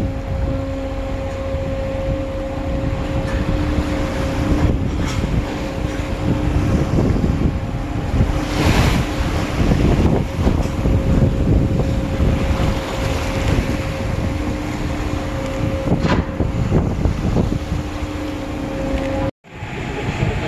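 Waves churn and splash against the side of a ship.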